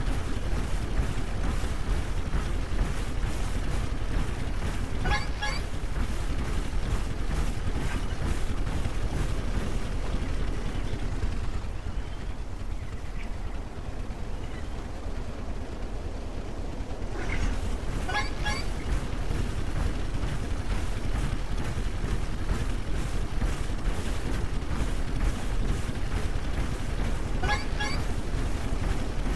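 Heavy mechanical footsteps thud and clank in a steady rhythm.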